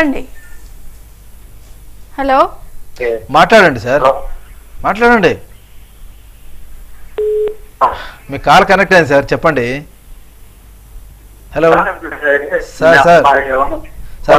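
A middle-aged man speaks calmly through a microphone, in short bursts with pauses.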